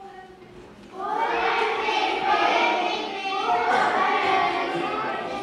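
A group of children sings loudly together.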